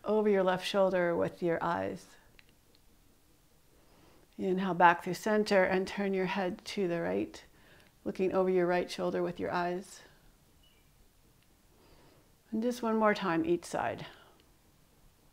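A woman speaks calmly and gently, close to a microphone, with pauses.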